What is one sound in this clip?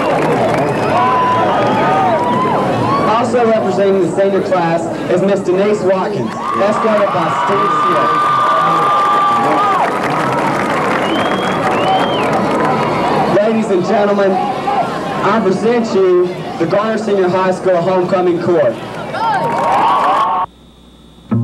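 A large group of young people cheer and shout outdoors.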